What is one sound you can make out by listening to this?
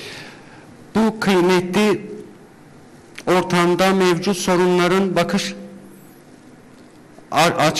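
A man speaks slowly into a microphone, heard over loudspeakers in a large echoing hall.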